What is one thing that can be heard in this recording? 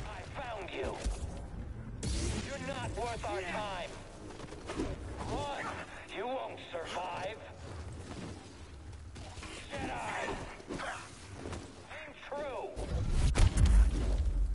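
Blades clash with sharp crackling hits.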